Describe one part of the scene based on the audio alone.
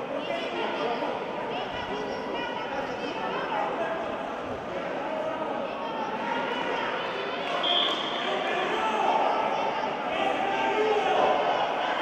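A crowd chatters and calls out in a large echoing hall.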